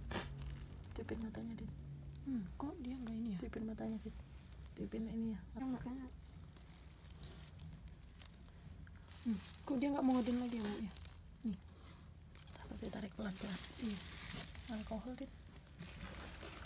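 Plastic crinkles and rustles close by.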